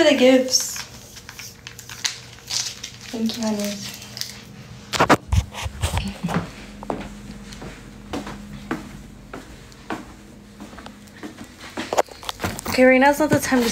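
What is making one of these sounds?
A young woman talks casually, close to a phone microphone.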